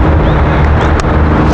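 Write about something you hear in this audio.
A handheld device clicks once.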